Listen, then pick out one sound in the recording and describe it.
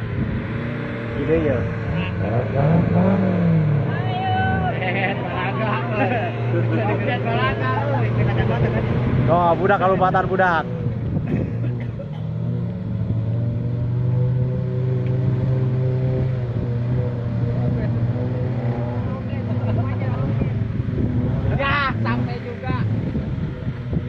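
Men talk and call out outdoors.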